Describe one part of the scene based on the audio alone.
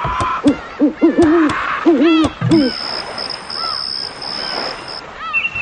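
Birds chirp and twitter.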